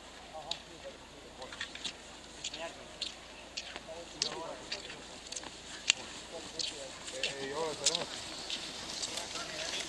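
Ski poles click and scrape on hard snow, drawing closer.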